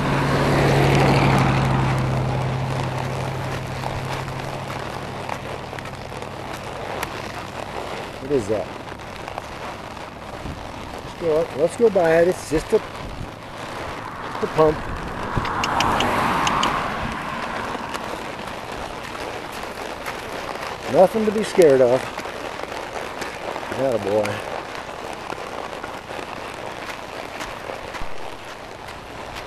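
Hooves clop steadily on a gravel roadside.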